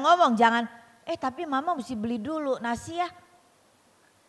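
A middle-aged woman speaks with animation into a microphone, heard through loudspeakers.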